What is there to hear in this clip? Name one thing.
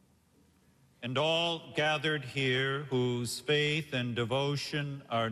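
A man chants in a steady sung voice through a microphone in a large echoing hall.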